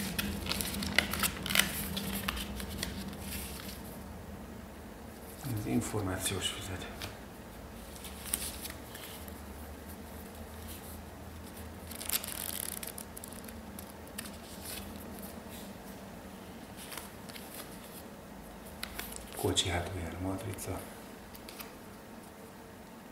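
Paper rustles and crinkles as hands handle it.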